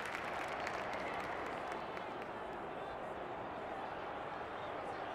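A large crowd murmurs and cheers steadily in the distance.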